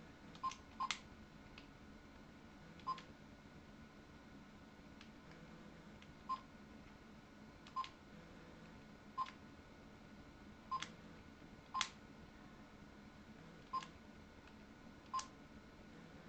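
Short electronic beeps sound as keys are pressed one by one.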